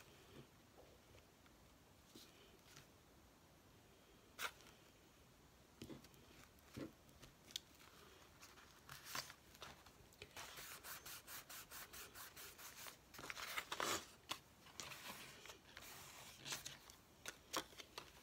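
Hands rustle and slide over paper pages.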